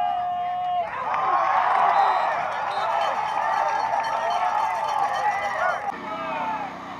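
A group of young men cheer and shout loudly outdoors.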